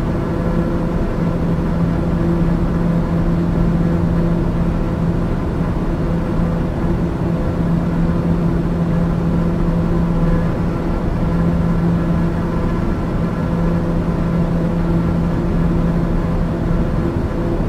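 Jet engines drone steadily with a low hum inside an aircraft cabin.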